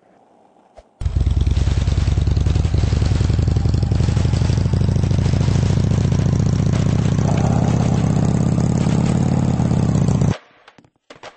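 A motorbike engine roars loudly and steadily.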